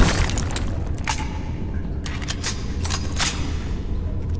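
A rifle is reloaded with metallic clicks.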